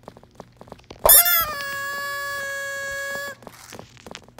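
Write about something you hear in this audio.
A bright chime rings out with a sparkling flourish.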